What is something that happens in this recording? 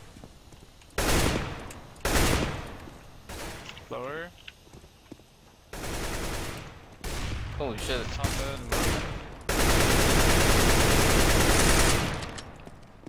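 A rifle fires in short bursts and a long burst.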